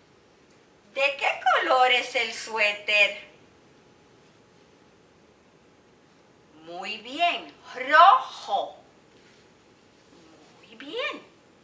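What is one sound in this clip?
A middle-aged woman speaks close by with animation, as if teaching.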